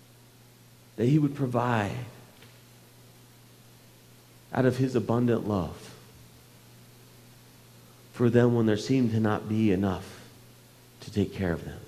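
A man speaks calmly through a microphone in a large room, with pauses between phrases.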